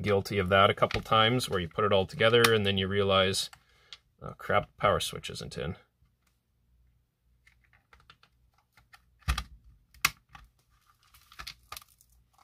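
A plastic casing creaks and clicks as it is pried open.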